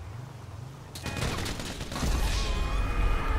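A machine gun fires in a loud burst.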